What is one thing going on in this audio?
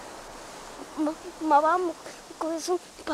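A child speaks softly, close by.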